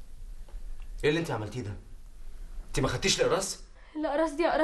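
A young man speaks quietly and seriously nearby.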